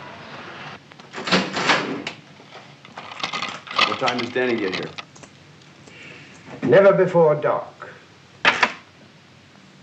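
A man speaks loudly in short bursts.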